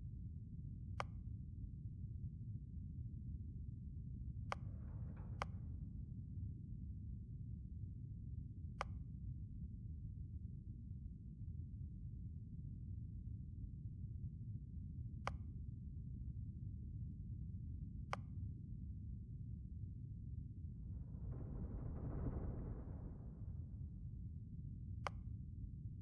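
Short interface clicks sound as menu options change.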